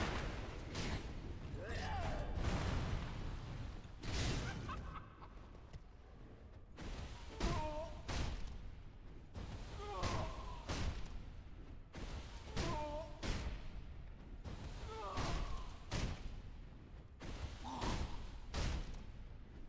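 Steel blades clash with sharp, ringing metallic clangs, again and again.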